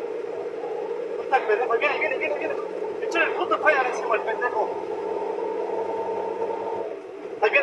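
Tyres roll and hum on the road.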